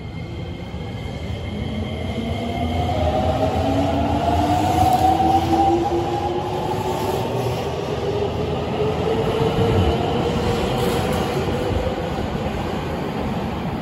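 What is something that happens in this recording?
A train pulls out with a rising electric motor whine, echoing in an underground station.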